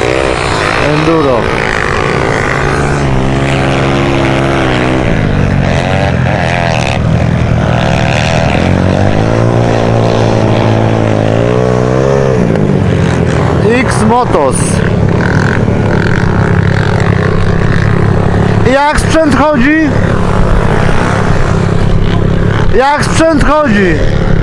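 A dirt bike engine idles and revs loudly close by.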